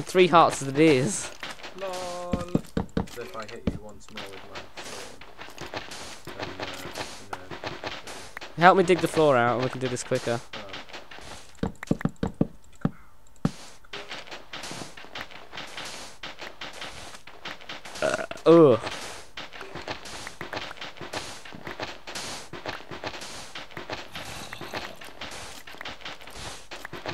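Stone blocks crunch and crack as they are dug out, in quick repeated taps.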